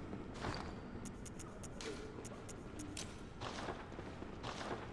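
Menu clicks tick softly.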